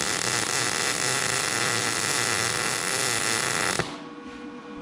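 A MIG welder crackles and hisses as it welds steel.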